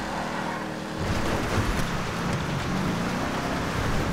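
Tyres rumble over rough dirt and gravel.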